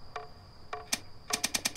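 A safe's combination dial clicks as it turns.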